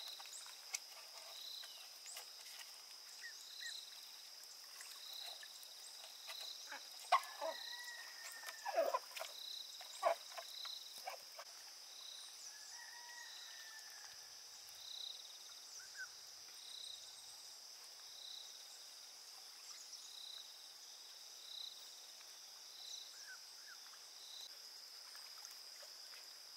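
A fishing net rustles as it is handled.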